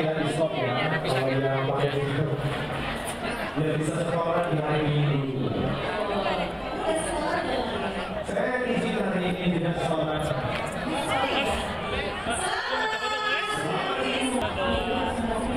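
Men and women chatter and laugh nearby outdoors.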